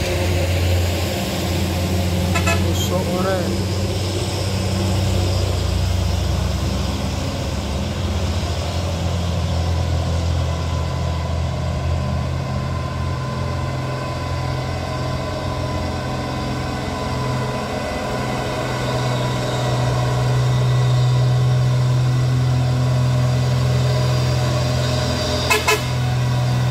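A heavy truck engine rumbles and grows louder as the truck climbs toward the listener.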